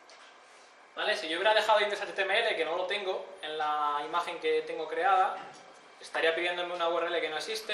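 A man speaks calmly to an audience in a room.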